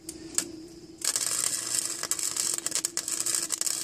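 An electric welding arc crackles and hisses steadily.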